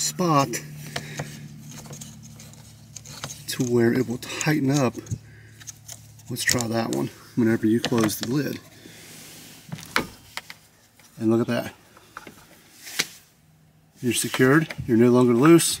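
A plastic clip clicks as fingers press and handle it.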